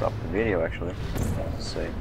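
A portal gun fires with a sharp electric whoosh.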